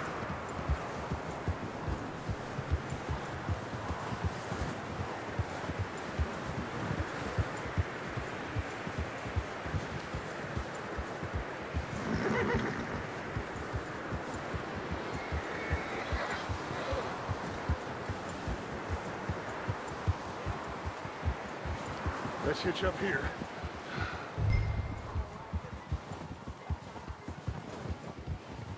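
Horse hooves thud steadily on snow.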